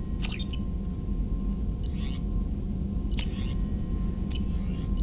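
Short electronic menu beeps and chirps sound now and then.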